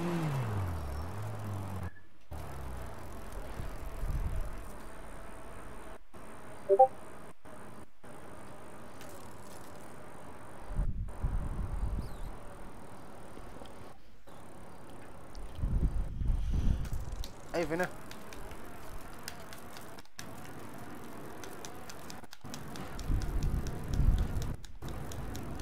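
A bicycle rolls along a paved road.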